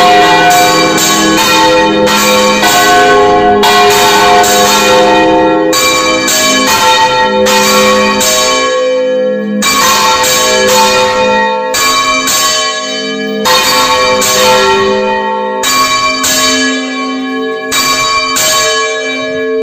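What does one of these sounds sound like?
Large bells ring out loudly and repeatedly, with a long ringing tail after each strike.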